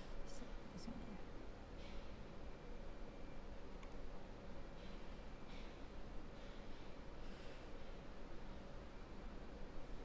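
A felt-tip marker squeaks softly as it writes on glass.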